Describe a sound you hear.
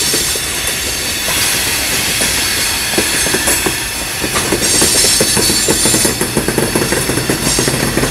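Steel wheels squeal on the curved track.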